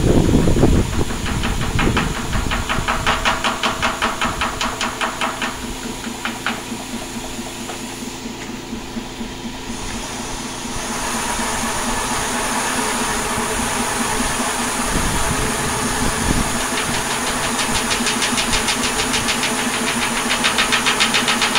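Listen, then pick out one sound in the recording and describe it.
A spinning wheel clicks in a fast, even rhythm.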